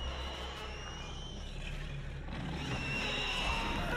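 A burst of fire whooshes up with a roar.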